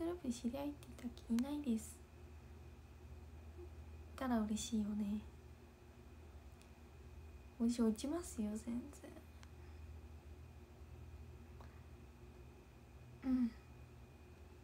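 A young woman speaks calmly in short bursts, close to a microphone.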